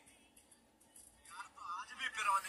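A young man speaks through a phone's small loudspeaker.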